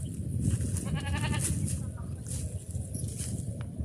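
Footsteps crunch on dry grass and leaves.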